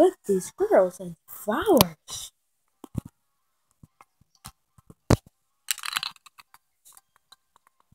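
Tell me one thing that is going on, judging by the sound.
A handheld game console plays music through its small speaker.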